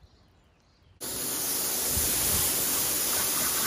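A pressure washer sprays water in a loud, steady hiss.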